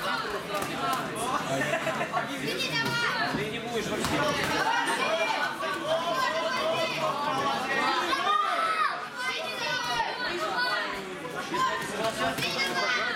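A crowd of spectators shouts and cheers loudly, echoing in a hall.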